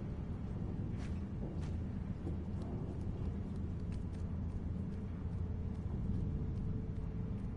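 Small footsteps patter on a wooden platform.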